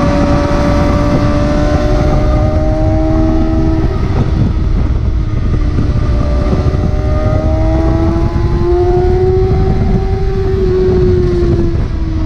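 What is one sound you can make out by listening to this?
A motorcycle engine roars at high revs, its pitch rising and falling through the gears.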